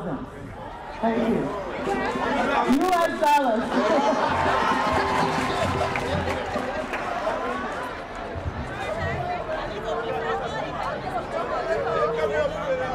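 A crowd of people chatter and sing along outdoors.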